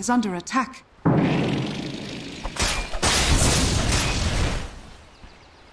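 Magic blasts and weapon hits crash during a fight.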